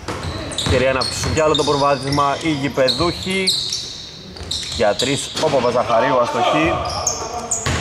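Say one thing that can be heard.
Young men shout and call out to each other on the court.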